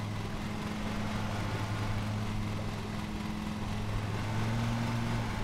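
A lawn mower engine hums steadily.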